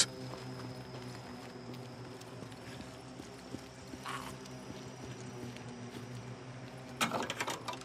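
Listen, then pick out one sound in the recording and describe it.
Footsteps crunch over gravel and dry leaves.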